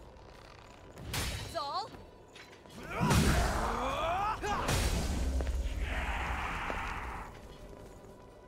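A heavy sword swings and strikes with loud metallic impacts.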